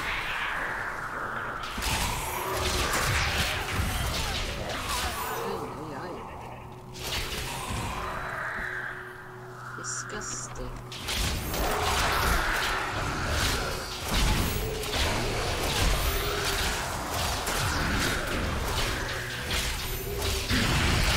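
Game spells crackle and whoosh during combat.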